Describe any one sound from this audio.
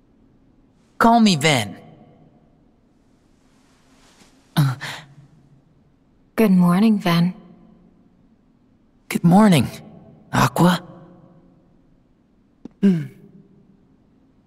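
A young man speaks calmly and warmly.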